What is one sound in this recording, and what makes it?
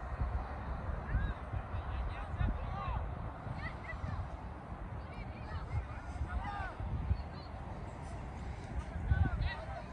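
Children shout in the distance across an open field.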